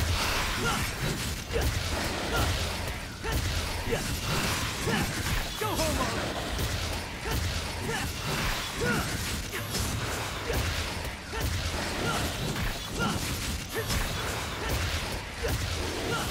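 Blades slash and strike rapidly in a fast fight.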